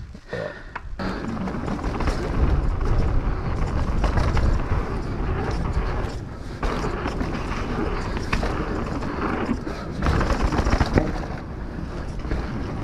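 Wind buffets against the rider at speed.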